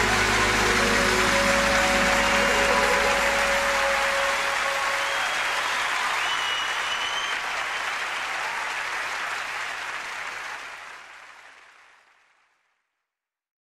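A large audience applauds and cheers loudly, then fades away.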